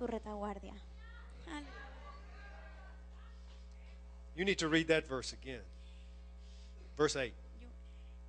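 A man speaks calmly into a microphone over a loudspeaker.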